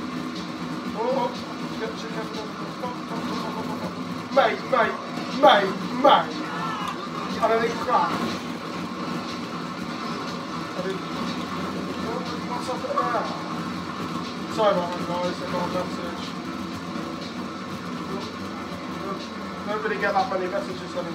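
A teenage boy talks and exclaims with excitement close by.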